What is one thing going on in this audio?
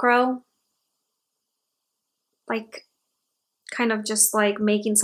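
A young woman talks calmly and close by, with pauses.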